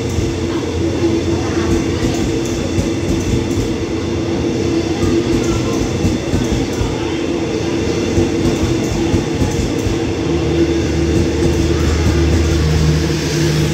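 A passenger train rolls past, its wheels rumbling on the rails.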